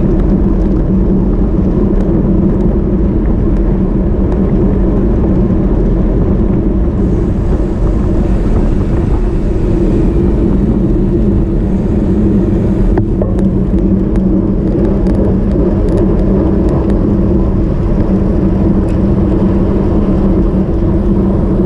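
Bicycle tyres hum on the road surface.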